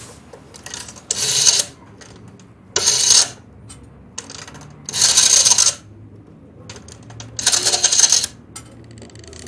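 A rotary telephone dial is turned and whirs as it spins back, several times.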